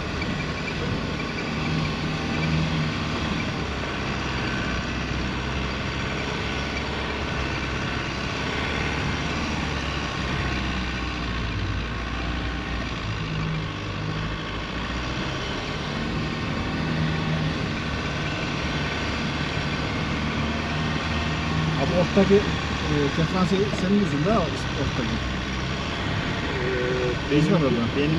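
A vehicle engine hums steadily as it drives.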